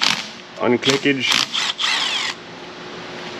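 A cordless ratchet whirs in short bursts.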